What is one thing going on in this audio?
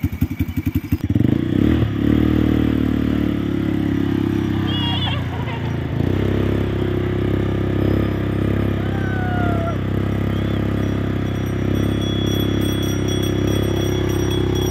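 A quad bike engine rumbles steadily nearby.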